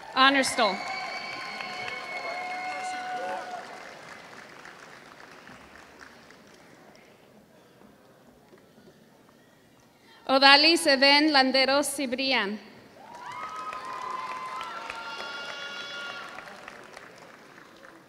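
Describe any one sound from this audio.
A crowd cheers and whoops in a large echoing hall.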